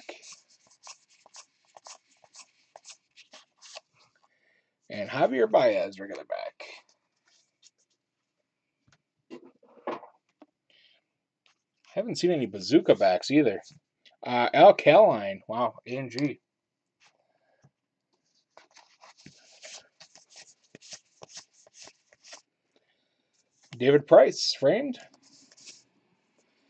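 Trading cards flick and rustle softly as they are shuffled by hand.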